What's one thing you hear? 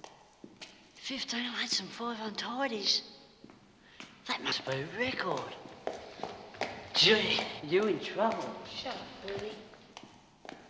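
Two young men talk quietly.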